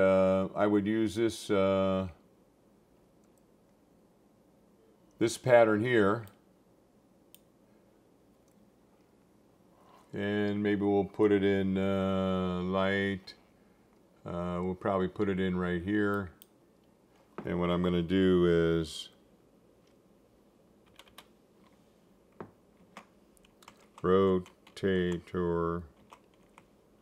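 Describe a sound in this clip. An elderly man talks calmly into a close microphone, in short bursts with pauses.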